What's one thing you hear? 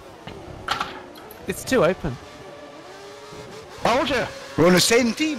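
A racing car engine whines at high revs.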